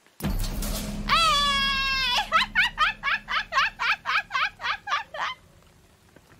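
A young woman laughs loudly and in high pitch into a microphone.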